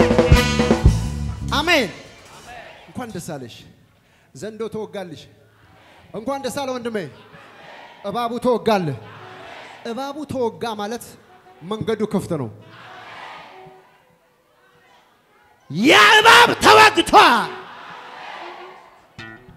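A man preaches loudly and with passion through a microphone in a large echoing hall.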